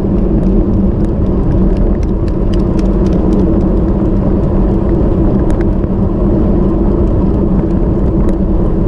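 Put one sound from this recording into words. Wind rushes loudly past at speed.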